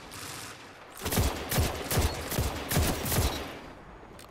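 Gunshots fire in rapid, loud bursts.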